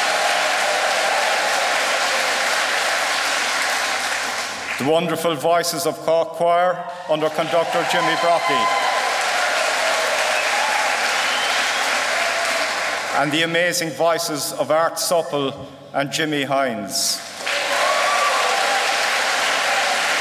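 A brass band plays in a large echoing hall.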